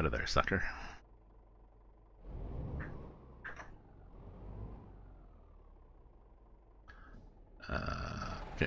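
A truck engine idles and rumbles low.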